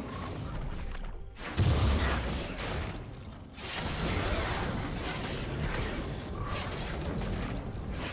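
Spell effects whoosh and burst as game characters fight.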